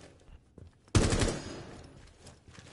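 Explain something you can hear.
A rifle fires a couple of sharp shots.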